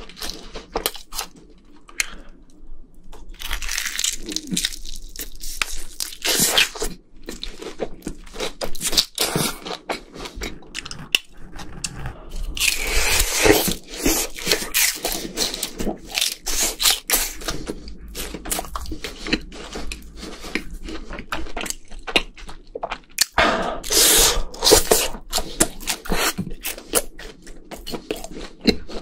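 A young man slurps and smacks his lips close to a microphone.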